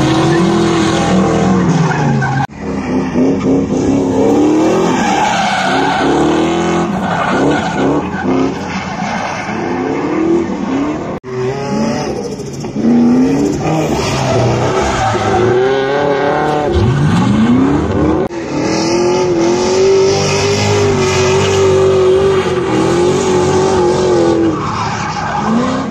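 Tyres screech loudly as a car drifts.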